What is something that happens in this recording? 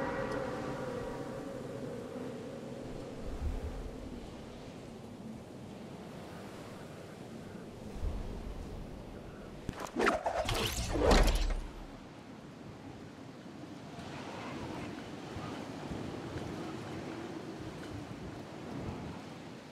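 Wind rushes steadily past during a fall through the air.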